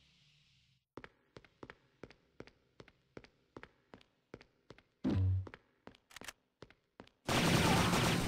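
Footsteps walk along a hard floor in a steady rhythm.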